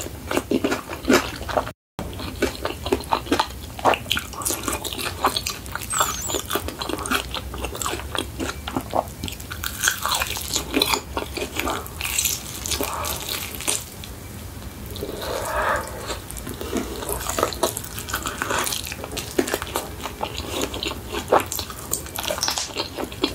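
A young woman chews crunchy fried food close to a microphone.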